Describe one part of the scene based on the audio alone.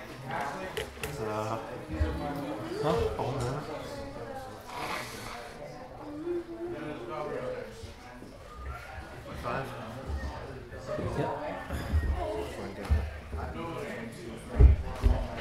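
Small plastic pieces tap and slide on a table.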